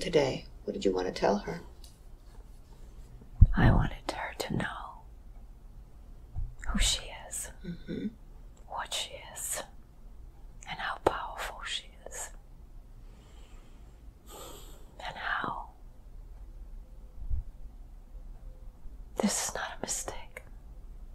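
An elderly woman speaks weakly and haltingly, close by.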